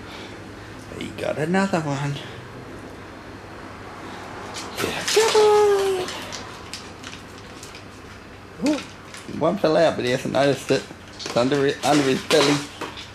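A dog whines and howls in drawn-out, wavering bursts.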